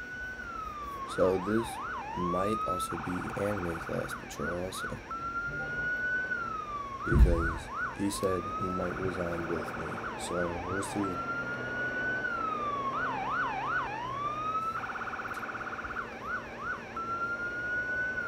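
A police siren wails and yelps.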